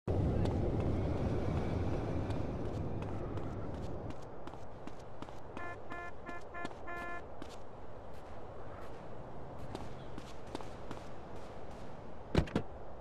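Footsteps tap quickly on pavement.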